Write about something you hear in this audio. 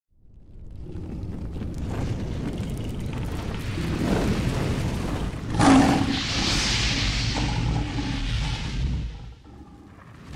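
Flames roar and whoosh.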